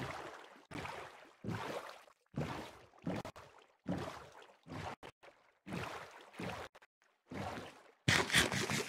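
Oars splash rhythmically through water.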